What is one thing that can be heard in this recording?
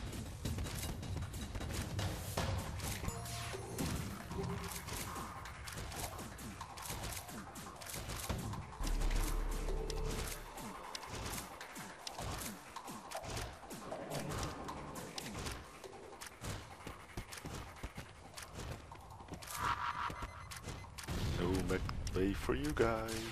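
Laser blasts fire and crackle against a ship's hull again and again.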